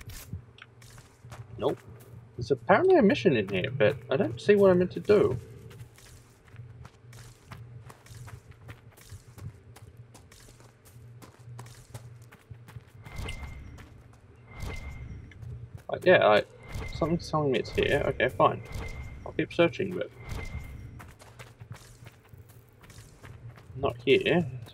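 Footsteps crunch softly over earth and stone.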